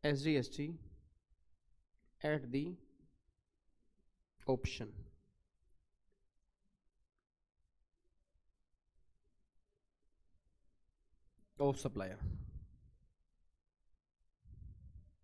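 A man speaks calmly in short phrases into a close microphone.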